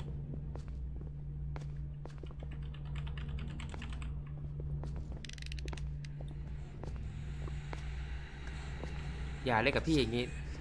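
Footsteps tap on a hard floor at a steady pace.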